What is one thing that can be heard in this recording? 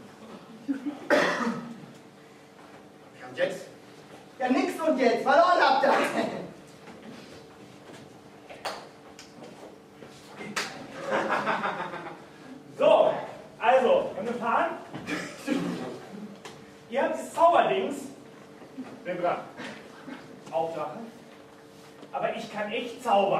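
Young men talk with animation, heard from a distance in an echoing room.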